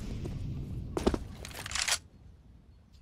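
A rifle is drawn with sharp metallic clicks.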